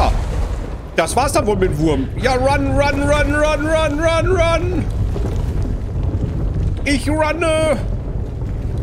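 A man talks excitedly into a close microphone.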